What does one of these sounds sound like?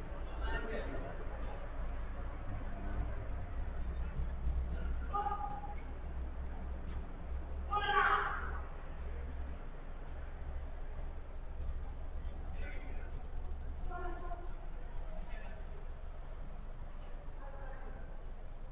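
Young men shout to each other from across a large echoing hall.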